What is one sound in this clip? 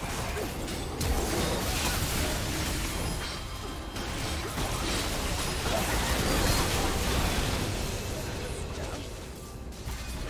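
Sword strikes and impacts clash repeatedly.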